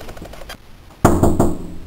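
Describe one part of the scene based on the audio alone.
A knock sounds on a door.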